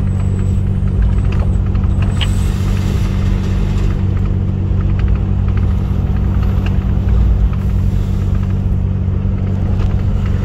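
A truck engine rumbles steadily from inside the cab.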